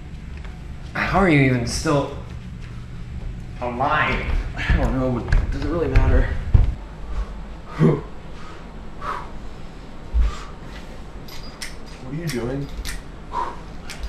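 A young man talks loudly and with animation, close by.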